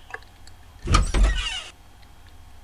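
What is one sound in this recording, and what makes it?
A computer plays a short door-opening sound.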